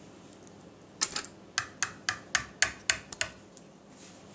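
A wire whisk taps quickly against the rim of a bowl.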